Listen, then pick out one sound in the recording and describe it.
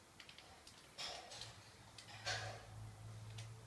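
A rifle is reloaded with metallic clicks and clacks.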